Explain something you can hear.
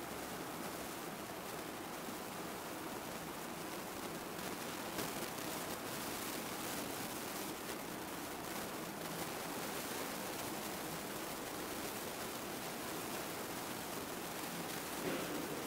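A man reads aloud steadily into a microphone.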